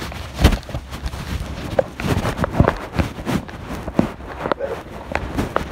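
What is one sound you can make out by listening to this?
A finger rubs and bumps against a microphone close up.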